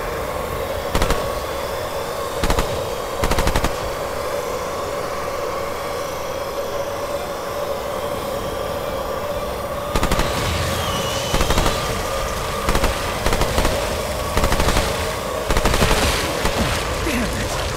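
A gun fires in short bursts of loud shots.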